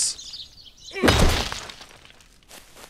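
A boulder shatters with a loud crash.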